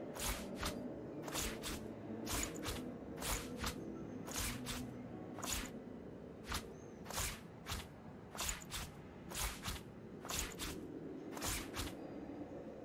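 Short soft clicks sound again and again as items are moved about.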